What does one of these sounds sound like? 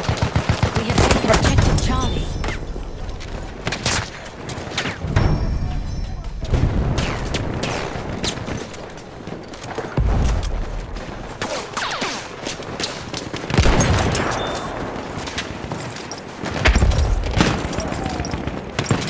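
Explosions boom loudly in the distance.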